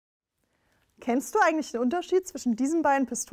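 A young woman speaks clearly and calmly into a close microphone.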